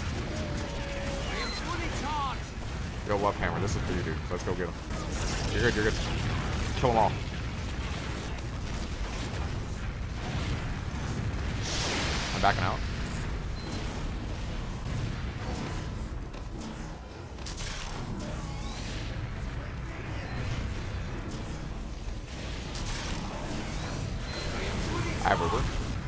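Gunfire and explosions crackle in a video game.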